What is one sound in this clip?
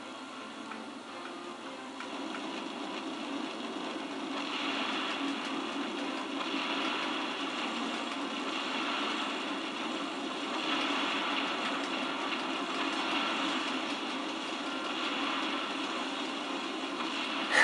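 A game aircraft's engines roar steadily through a television speaker.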